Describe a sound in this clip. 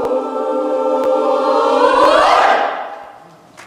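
A mixed choir sings in harmony in a large echoing hall.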